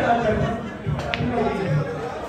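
Billiard balls click together sharply.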